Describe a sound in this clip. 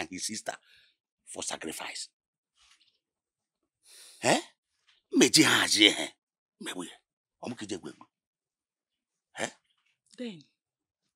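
A man speaks close by in short, emotional bursts.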